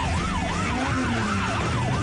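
Tyres screech as a car skids sideways.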